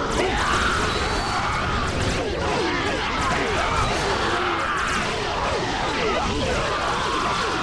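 Energy blasts burst and crackle loudly.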